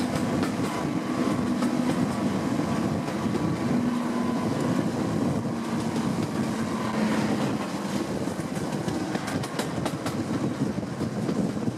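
A train's carriages rumble and clatter steadily along the track.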